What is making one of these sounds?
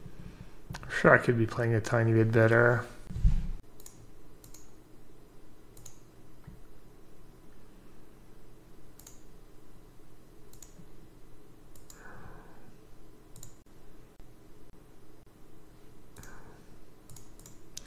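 A young man speaks briefly and calmly into a close microphone.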